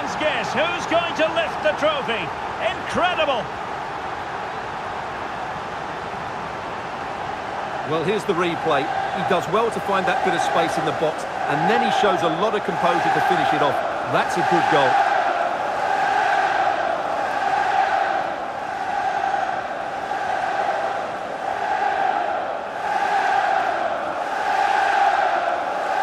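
A large crowd cheers and chants in a stadium.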